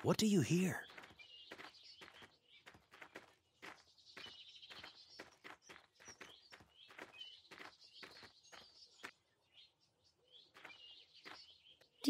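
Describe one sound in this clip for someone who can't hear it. Footsteps patter steadily on a dirt path.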